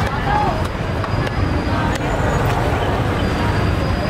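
A cleaver chops on a wooden board.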